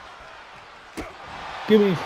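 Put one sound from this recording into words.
Heavy blows thud against a body.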